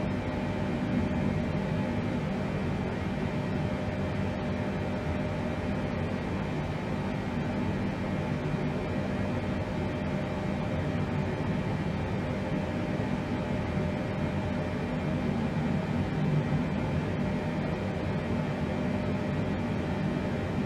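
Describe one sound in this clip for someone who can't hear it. Aircraft engines drone steadily with a low, even hum.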